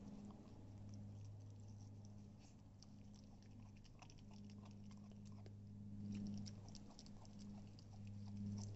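A puppy gnaws and chews wetly on a bone, with small crunching clicks.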